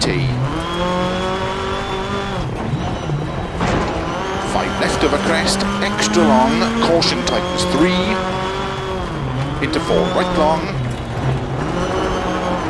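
A rally car engine revs hard, rising and falling as the gears change.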